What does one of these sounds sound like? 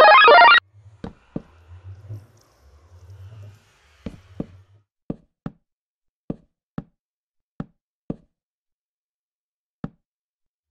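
Footsteps thud on wooden planks at a steady walking pace.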